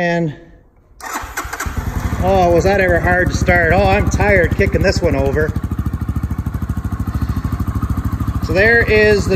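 A motorcycle engine starts and idles with a steady rapid putter.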